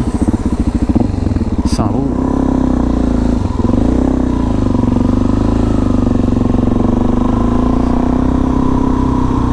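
A motorcycle engine revs up and pulls away, then hums steadily while riding.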